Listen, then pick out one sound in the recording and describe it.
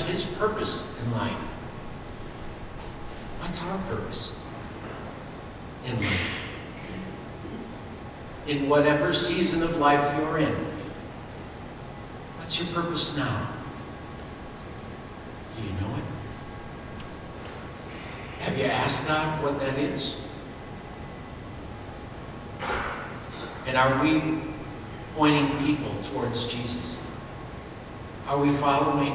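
A man speaks with animation through a microphone in a large echoing hall, with pauses between phrases.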